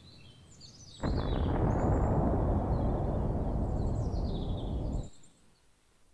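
A huge explosion booms and rumbles loudly.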